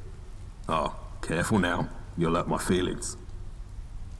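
A man speaks calmly and wryly, close by.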